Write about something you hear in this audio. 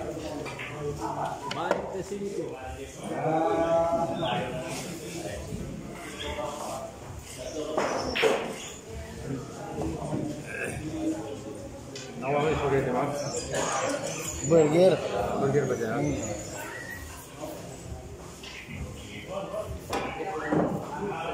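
A cue ball strikes other balls with sharp clacks.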